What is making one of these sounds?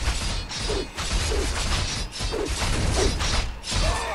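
A burst of magic rings out with a bright shimmering sound.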